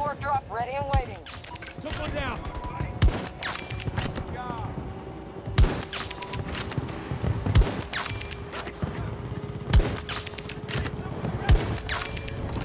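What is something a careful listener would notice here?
A sniper rifle fires loud, sharp shots every couple of seconds.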